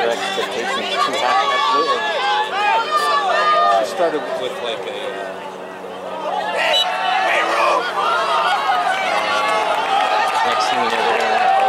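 A crowd of spectators shouts and cheers close by, outdoors.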